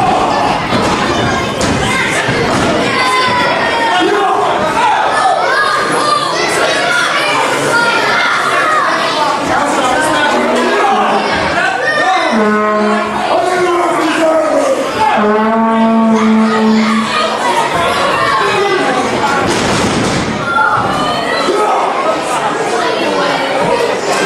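A crowd chants and shouts loudly in a large echoing hall.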